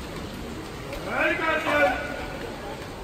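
A man calls out briefly over a loudspeaker.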